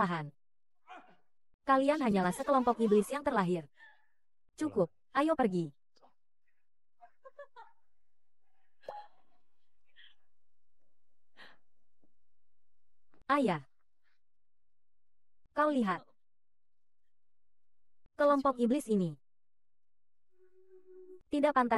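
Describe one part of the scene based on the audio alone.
A young woman speaks tearfully and with emotion, close by.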